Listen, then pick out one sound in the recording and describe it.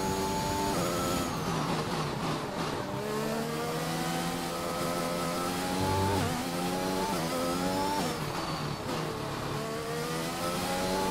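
A racing car engine drops in pitch as the car brakes for corners.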